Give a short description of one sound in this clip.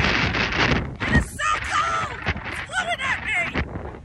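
A middle-aged woman talks close by, raising her voice over the wind.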